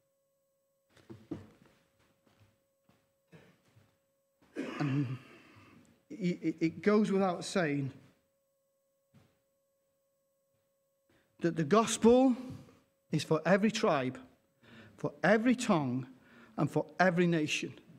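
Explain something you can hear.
An older man speaks through a microphone, pausing between phrases.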